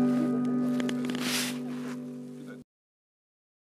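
An acoustic steel-string guitar is strummed.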